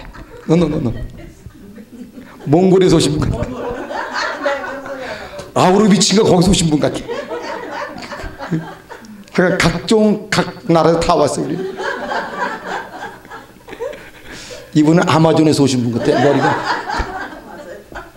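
A middle-aged man laughs into a microphone.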